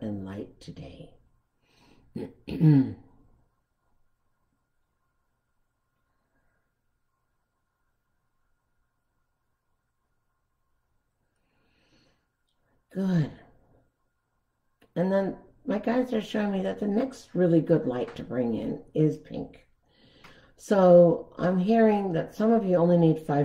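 An elderly woman speaks calmly and slowly into a nearby microphone, with long pauses.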